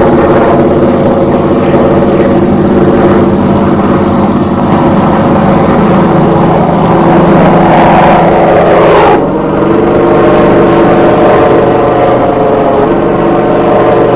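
An aircraft engine drones steadily overhead.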